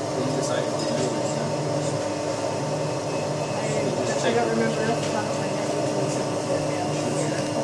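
A testing machine hums steadily.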